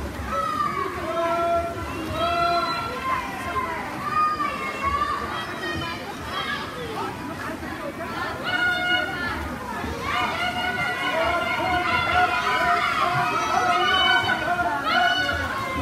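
Swimmers splash through the water.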